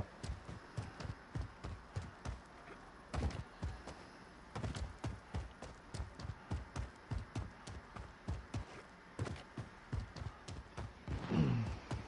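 Footsteps run quickly over ground.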